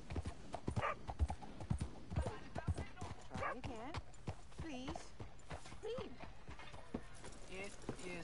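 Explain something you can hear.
Horse hooves clop on a dirt road at a trot.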